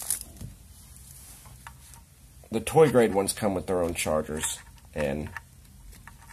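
Small plastic parts click and rattle as they are handled.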